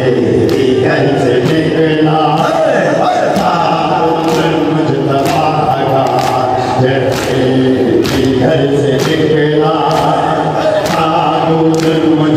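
Many hands beat on chests in a steady rhythm.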